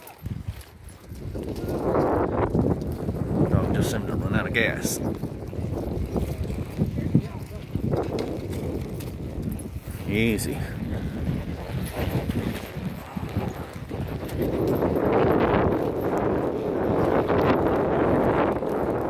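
Horses' hooves thud steadily on a dirt trail.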